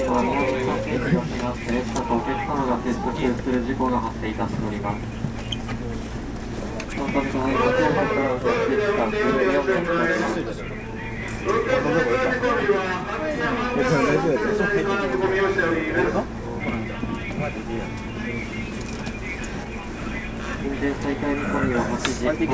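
A stopped train's machinery hums steadily.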